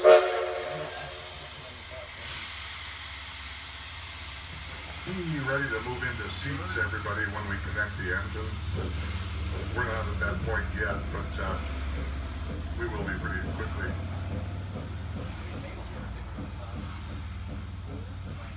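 A steam locomotive chugs and puffs nearby.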